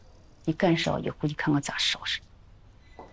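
A middle-aged woman speaks sternly up close.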